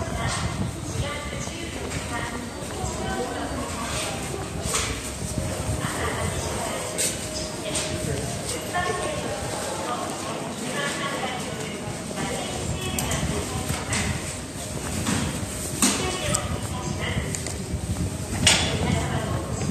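Shoppers chatter in a covered arcade.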